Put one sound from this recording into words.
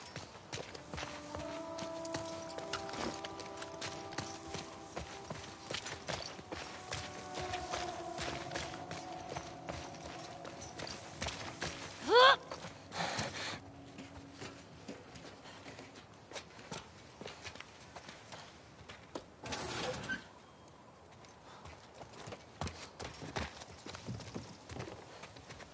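Footsteps run through grass and over concrete.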